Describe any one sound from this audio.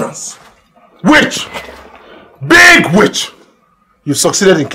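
A man speaks sternly, close by.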